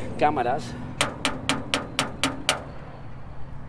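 A man knocks quickly on a hollow wall.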